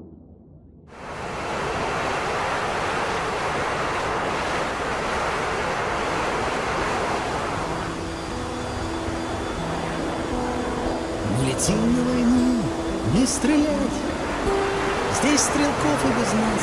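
Jet engines roar steadily as aircraft fly past.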